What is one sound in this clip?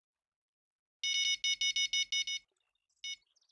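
An electronic bite alarm beeps in a quick series of high tones.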